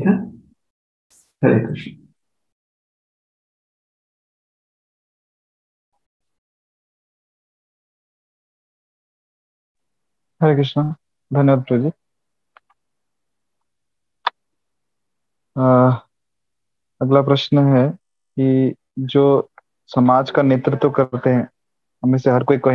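A man speaks calmly through an online call, with long pauses.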